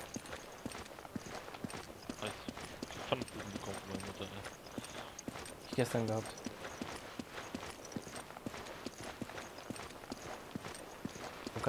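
Boots thud quickly on hard ground as a man runs.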